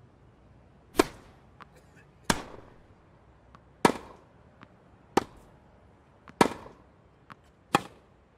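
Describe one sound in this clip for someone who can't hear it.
Tennis rackets strike a ball back and forth in a sharp, steady rally.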